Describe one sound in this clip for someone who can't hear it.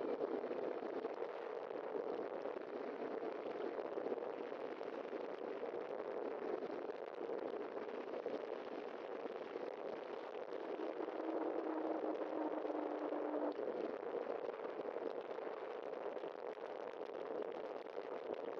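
Wheels roll steadily over rough pavement.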